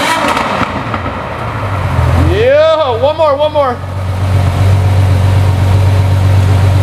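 A sports car engine idles with a deep, steady rumble from the exhaust.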